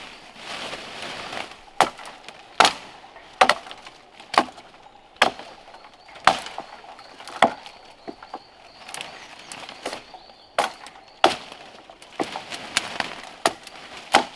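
Dry leaves rustle and crackle as someone moves through cut brush.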